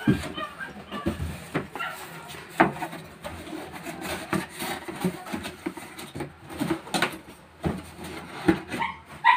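Cardboard rustles and scrapes as a box is folded.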